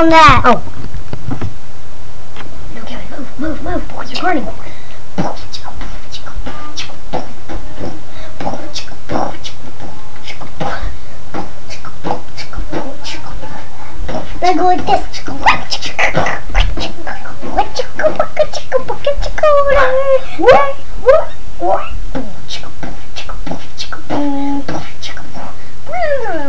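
A young boy talks and exclaims close to the microphone.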